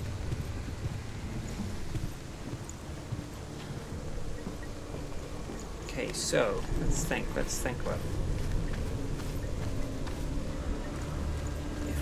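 Footsteps tread on stone at a steady walking pace.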